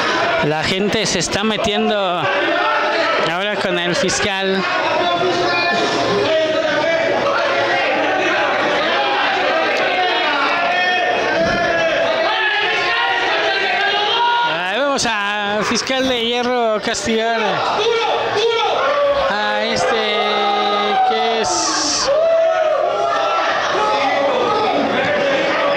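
A crowd of men and women shouts and cheers loudly in an echoing hall.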